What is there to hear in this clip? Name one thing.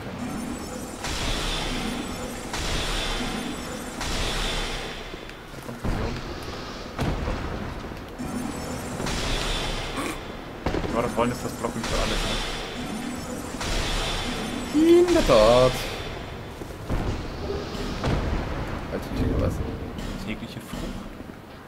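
Magic spells burst with loud whooshing blasts, again and again.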